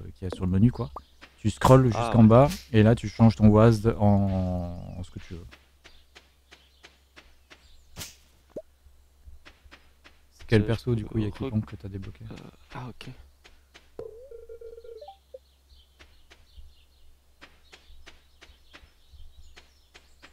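Soft footsteps patter steadily on dirt.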